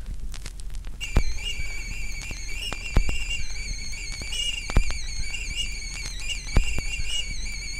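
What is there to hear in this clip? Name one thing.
A kettle whistles shrilly and steadily.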